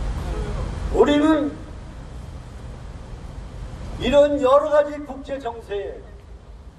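An elderly man speaks loudly through a microphone and loudspeakers, outdoors.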